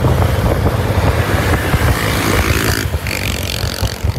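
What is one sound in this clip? A passing motorbike buzzes by close.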